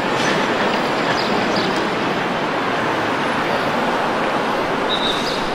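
Steady outdoor city noise and construction rumble fill the air.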